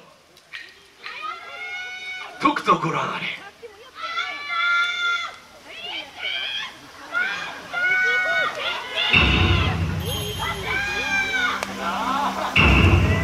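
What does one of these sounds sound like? Music with singing plays loudly through a loudspeaker outdoors.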